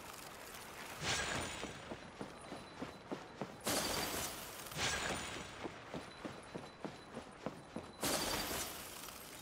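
A magical whoosh sweeps past in sudden bursts.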